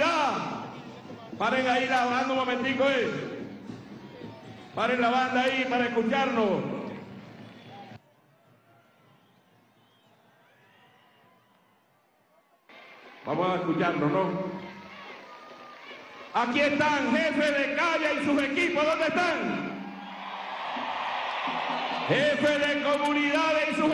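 A man speaks forcefully through a loudspeaker outdoors, pausing between phrases.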